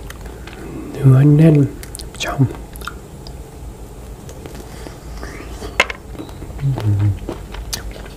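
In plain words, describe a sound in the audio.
A young man speaks briefly and softly, close to a microphone.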